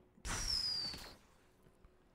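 A futuristic gun fires a humming energy blast.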